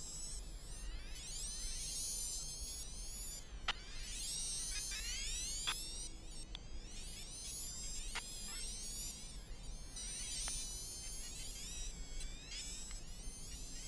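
Small electric model car motors whine, rising and falling in pitch as the cars speed up and slow down.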